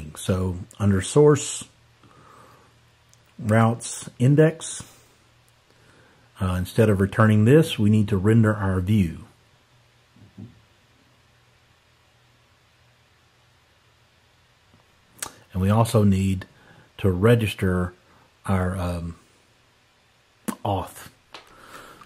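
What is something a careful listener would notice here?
A man speaks calmly and close to a microphone, in pauses.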